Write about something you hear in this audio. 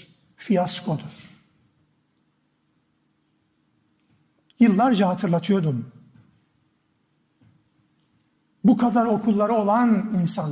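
A middle-aged man speaks with emphasis through a microphone, pausing between phrases.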